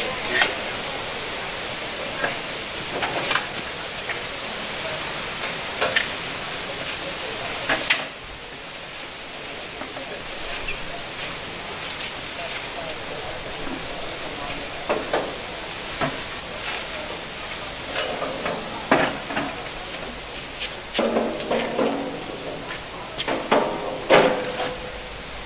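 Metal and stone knock and clank as men work at a cart.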